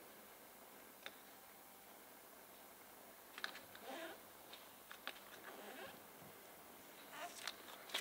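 A sticker's backing paper crinkles and peels off.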